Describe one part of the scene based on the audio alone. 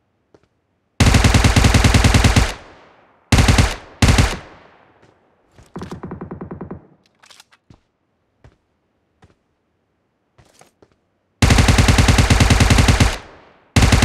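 A rifle fires rapid bursts of automatic shots close by.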